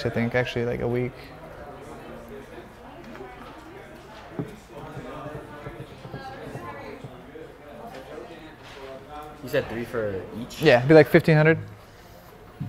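A young man speaks casually nearby.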